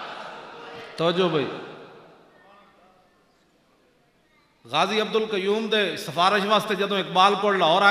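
An elderly man speaks forcefully through a microphone and loudspeakers.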